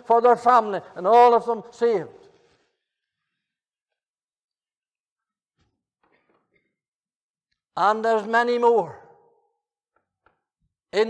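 An elderly man speaks with emphasis through a microphone, with long pauses.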